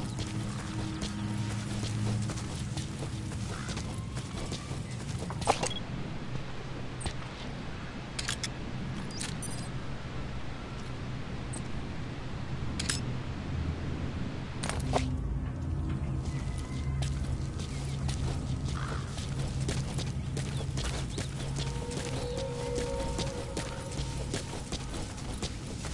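Footsteps crunch slowly over dry ground and grass.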